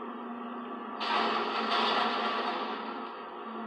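A car crashes with a burst of noise.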